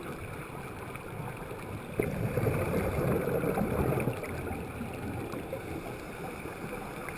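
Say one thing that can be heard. Water rumbles and rushes in a low, muffled underwater hush.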